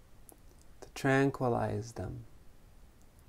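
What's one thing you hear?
A man says a few drawn-out words in a calm, low voice close by.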